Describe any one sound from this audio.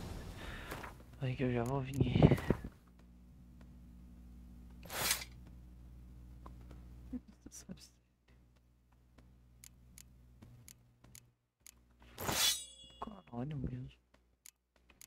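A young man talks close to a headset microphone with animation.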